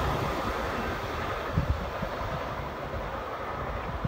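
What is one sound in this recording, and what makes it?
A train rumbles far off and slowly fades away.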